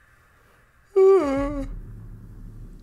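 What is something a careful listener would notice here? A young man lets out a loud, wavering shout close to a microphone.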